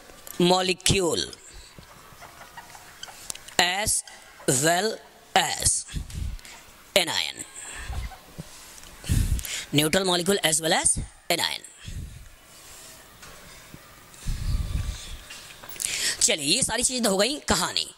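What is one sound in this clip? A man speaks calmly through a close microphone, explaining in short bursts with pauses.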